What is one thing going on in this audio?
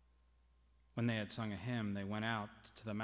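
A man sings loudly through a microphone in an echoing hall.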